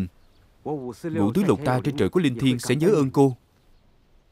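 An elderly man speaks earnestly and close by.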